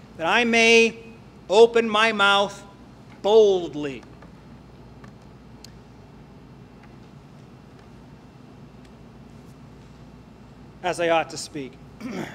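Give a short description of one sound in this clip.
A man speaks slowly and calmly into a microphone, pausing between phrases.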